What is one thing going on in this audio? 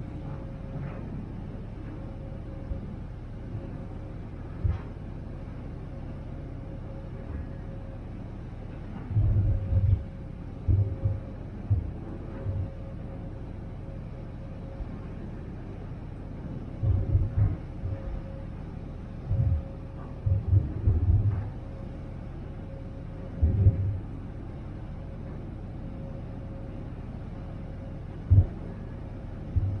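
A ferry's engine hums steadily.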